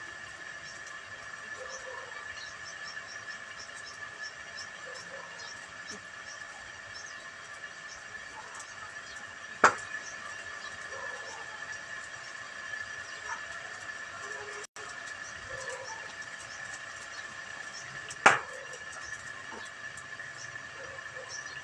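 A fire crackles as straw burns.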